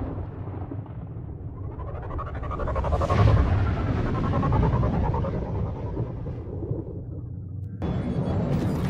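A spacecraft engine hums and whooshes past.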